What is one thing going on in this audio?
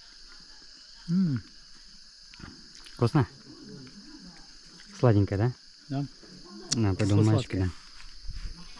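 An older man talks calmly, close by.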